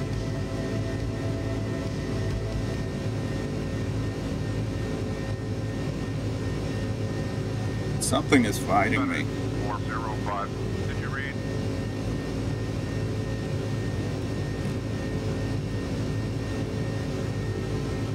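Jet engines drone steadily from inside a cockpit.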